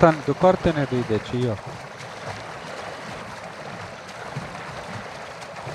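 Water sloshes and splashes as someone swims slowly.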